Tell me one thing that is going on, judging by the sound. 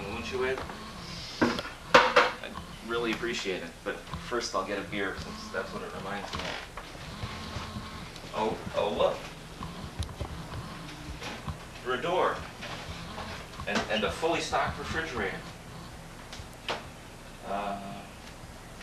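A man talks casually close by.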